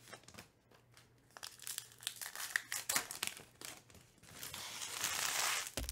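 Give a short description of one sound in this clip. Cardboard cards tap down onto a stack.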